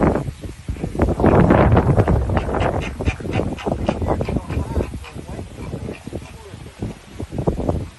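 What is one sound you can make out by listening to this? Wind gusts outdoors, buffeting with a low rumble.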